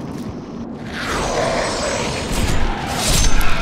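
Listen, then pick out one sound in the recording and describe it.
A magic spell bursts with a rushing whoosh.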